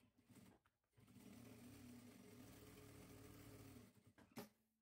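An industrial sewing machine runs, stitching fabric.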